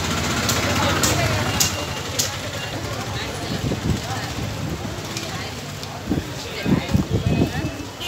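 A busy street crowd murmurs with many voices outdoors.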